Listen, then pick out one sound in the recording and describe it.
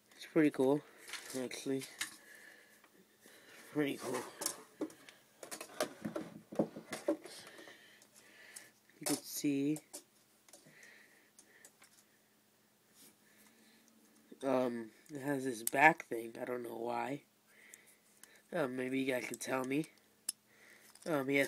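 Small plastic toy pieces click and rattle as they are handled.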